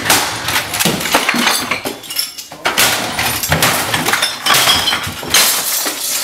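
A stick whacks and clatters against hard objects.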